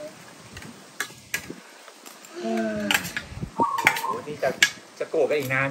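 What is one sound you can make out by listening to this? Cutlery clinks on a plate.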